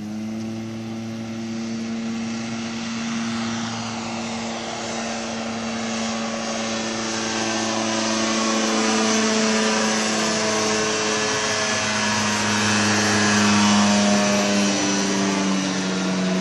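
A small aircraft engine drones steadily, growing louder as it approaches and passes overhead.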